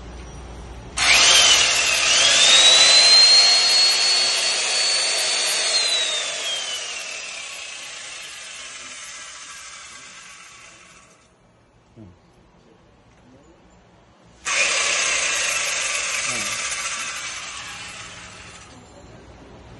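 An electric chainsaw whirs loudly, revving up and then winding down.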